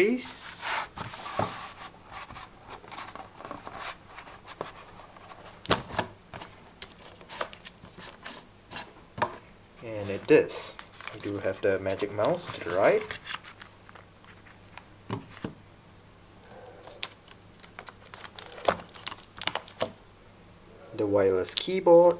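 A thin plastic sheet rustles and crinkles as it is handled.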